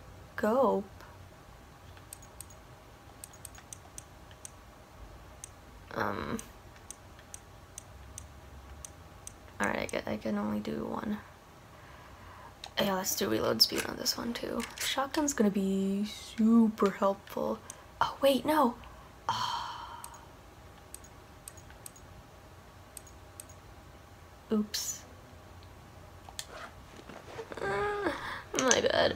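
A young woman talks calmly into a nearby microphone, in bursts with pauses.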